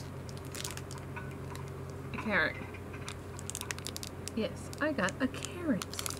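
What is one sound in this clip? A plastic wrapper crinkles in a young woman's hands.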